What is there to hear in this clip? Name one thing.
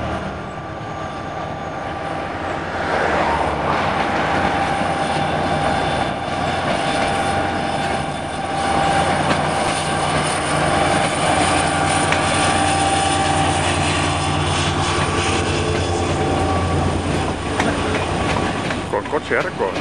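A diesel locomotive engine rumbles and drones as a train approaches and passes close by.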